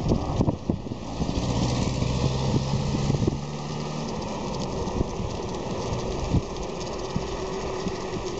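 Bicycle tyres roll over the road surface.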